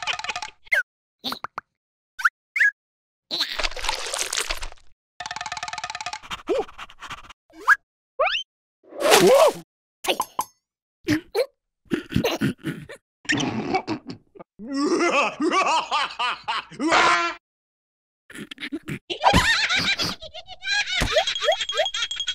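Cartoon creatures babble and squeak in high, silly voices.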